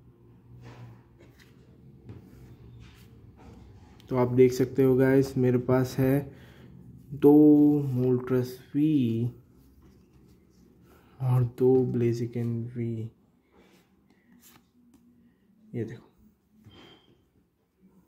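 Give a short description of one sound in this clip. Stiff playing cards rustle and slide as hands shuffle them.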